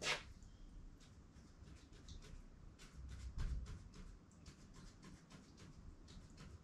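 A pen scratches quickly across paper in short strokes.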